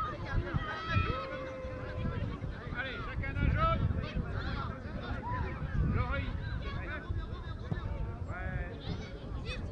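Young children shout and call out across an open field.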